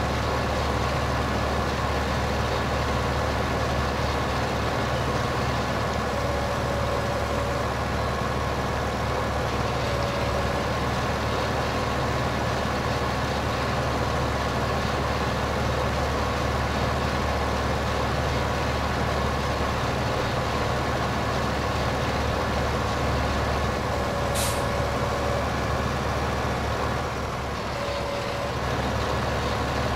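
A tractor engine hums steadily as it drives.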